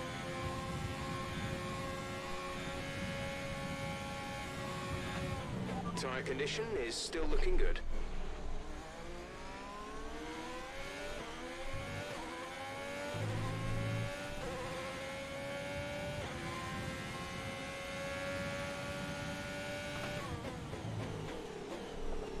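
A racing car engine roars at high revs, rising and falling as it shifts gears.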